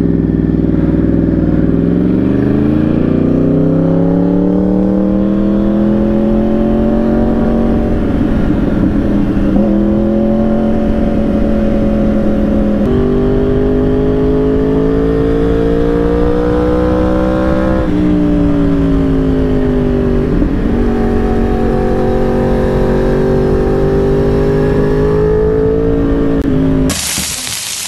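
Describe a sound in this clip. A motorcycle engine roars loudly, revving up and shifting through gears.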